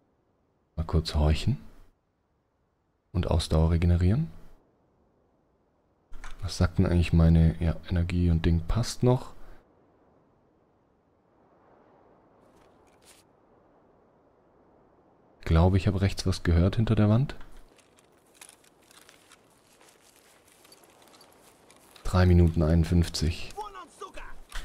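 A young man speaks close into a microphone in short bursts.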